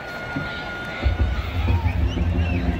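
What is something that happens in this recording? Drums of a marching band pound heavily.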